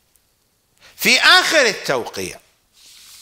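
An elderly man speaks with feeling into a microphone.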